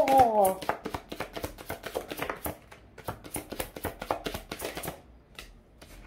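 Playing cards riffle and snap quickly as they are shuffled close by.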